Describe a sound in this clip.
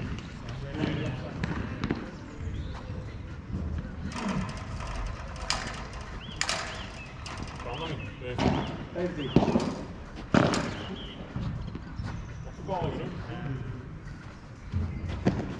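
Adult men talk and call out outdoors.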